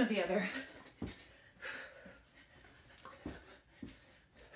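Sneakers land with dull thumps on a carpeted floor as a woman jumps.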